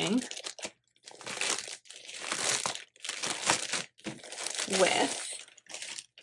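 Plastic wrapping crinkles and rustles under handling fingers.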